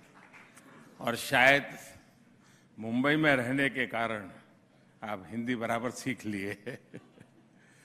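An elderly man speaks calmly into a microphone through loudspeakers.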